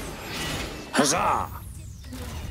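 An explosion bursts with a loud bang.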